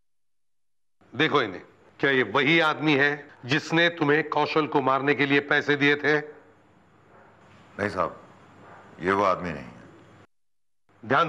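An older man speaks firmly and sternly, close by.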